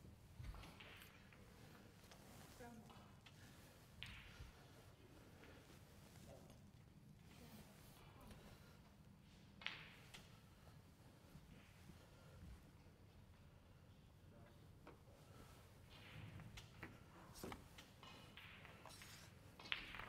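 Snooker balls knock softly as they are set down on a table, now and then.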